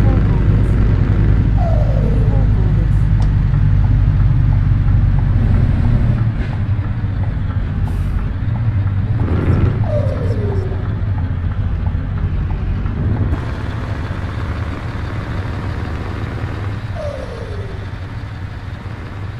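A truck engine rumbles steadily and low, slowly quietening.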